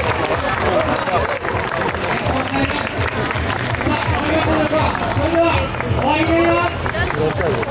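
A large outdoor crowd of men and women shouts and calls out with excitement.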